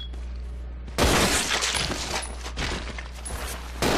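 Gunshots bang loudly and echo.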